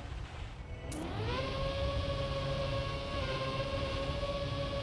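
A racing car engine whines, rising in pitch and then holding steady.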